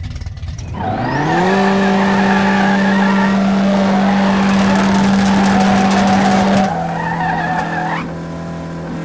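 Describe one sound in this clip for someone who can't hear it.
Tyres screech as they spin on the road.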